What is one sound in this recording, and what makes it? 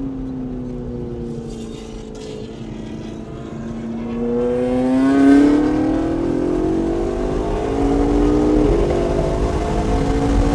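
A car engine hums steadily from inside the cabin, then revs higher as the car speeds up.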